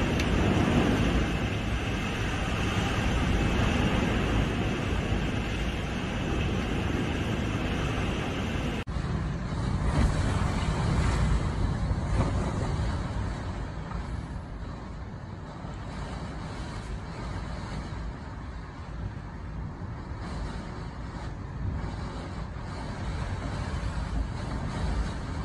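Heavy rain pours down.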